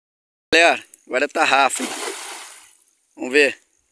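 A cast net splashes onto water.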